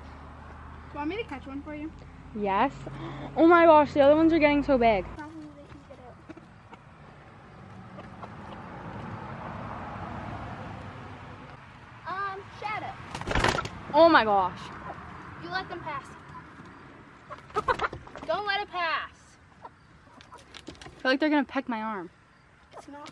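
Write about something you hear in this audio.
A girl talks excitedly close by.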